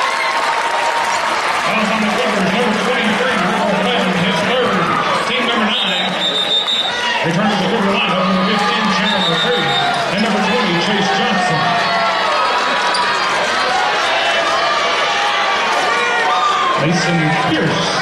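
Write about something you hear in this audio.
A large indoor crowd chatters and murmurs in an echoing gym.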